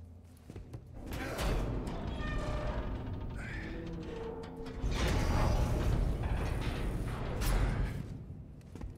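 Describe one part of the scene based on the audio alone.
A heavy metal door grinds and scrapes as it is forced open.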